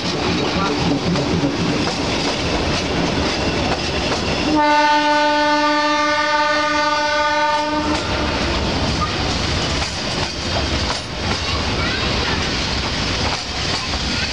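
Freight wagons clatter and rattle over the rails.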